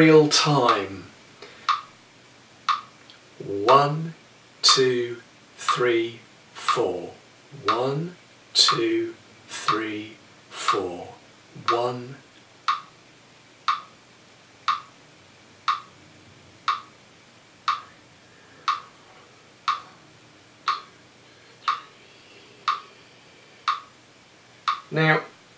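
A middle-aged man speaks calmly and clearly close by.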